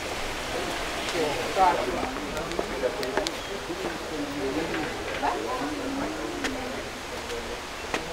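Men and women chatter casually in a crowd nearby, outdoors.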